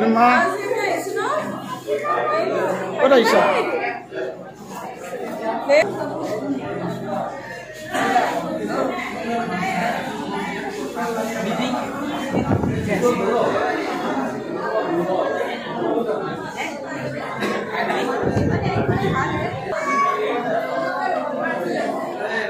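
Many adults and children talk over each other in a busy room.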